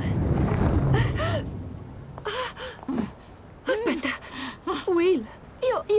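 A young woman speaks with concern, close by.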